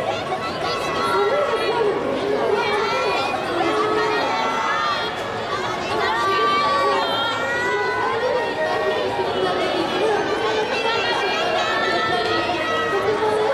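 A group of singers performs together through loudspeakers outdoors.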